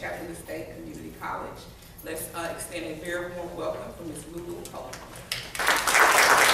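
A woman speaks into a microphone in a large hall.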